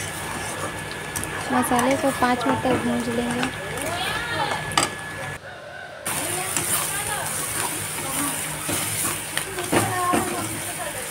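A metal spatula scrapes and stirs thick paste in a pan.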